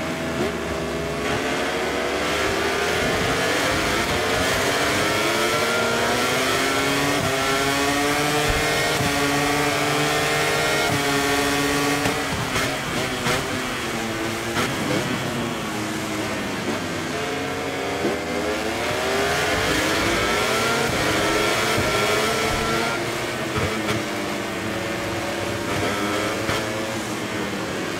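A motorcycle engine revs high and shifts through gears, rising and falling in pitch.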